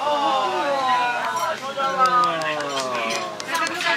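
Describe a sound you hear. Llamas hum and call with high, wavering cries.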